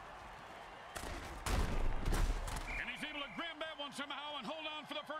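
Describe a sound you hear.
Armoured players crash together heavily in a tackle.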